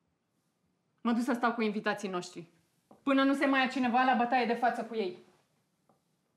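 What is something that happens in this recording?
A woman speaks calmly and firmly, close by.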